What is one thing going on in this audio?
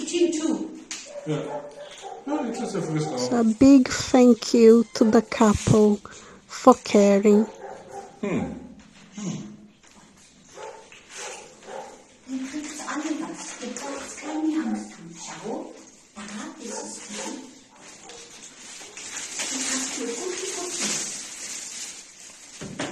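Cats meow loudly and repeatedly.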